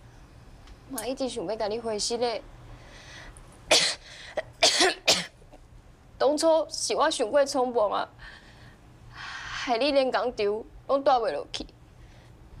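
A young woman speaks softly and earnestly, close by.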